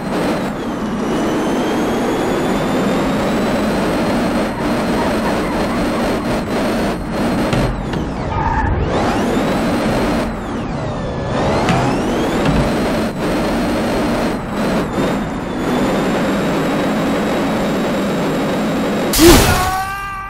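A car engine roars loudly and revs up and down.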